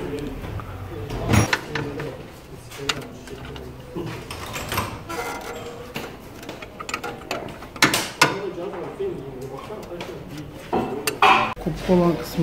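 Metal parts clink and knock as a hand works under a car.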